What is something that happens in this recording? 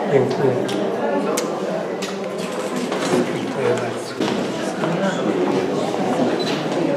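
A crowd of men and women chatters in a room.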